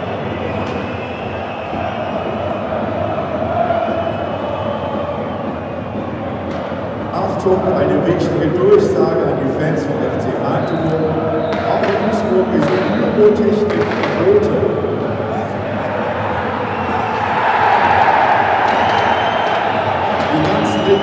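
A large stadium crowd chants and sings loudly in an open, echoing space.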